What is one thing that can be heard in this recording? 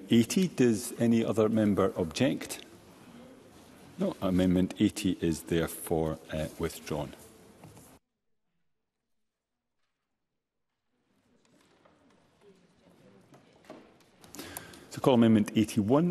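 A middle-aged man speaks calmly and formally into a microphone.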